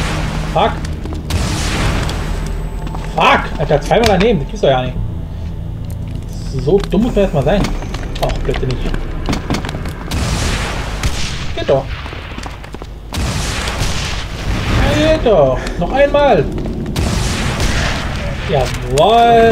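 A heavy gun fires repeatedly.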